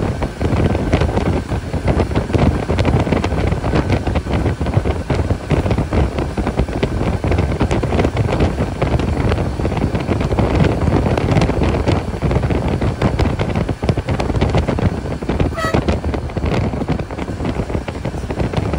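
A bus engine roars steadily from close by as it drives along.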